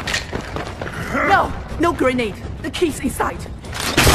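A young woman speaks urgently.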